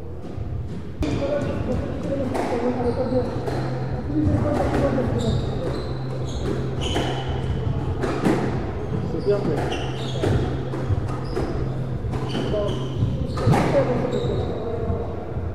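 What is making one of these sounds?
A squash ball smacks sharply against the walls in an echoing court.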